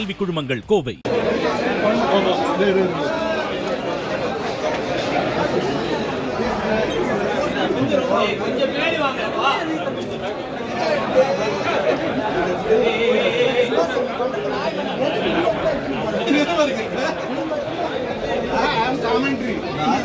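A crowd of people talks and shouts over one another close by.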